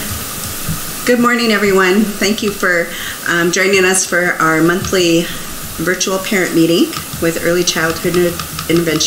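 A middle-aged woman speaks cheerfully through a microphone on an online call.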